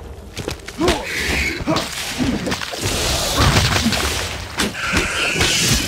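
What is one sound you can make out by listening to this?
Short cartoonish sound effects pop and whoosh.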